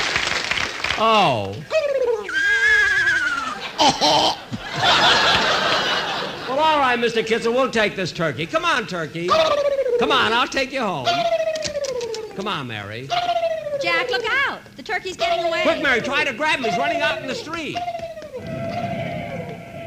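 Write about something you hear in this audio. An old radio whistles and warbles in sliding tones as it is tuned.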